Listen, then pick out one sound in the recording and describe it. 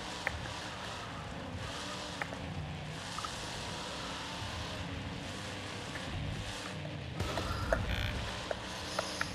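Tyres churn through loose dirt.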